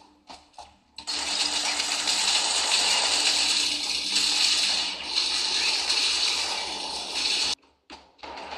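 A laser gun fires in loud, buzzing bursts.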